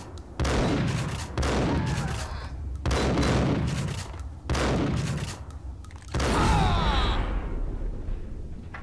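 Shotgun blasts boom one after another and echo in a hard, tiled corridor.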